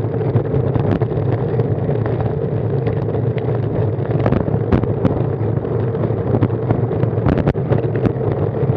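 Wind rumbles and buffets against the microphone of a moving bicycle.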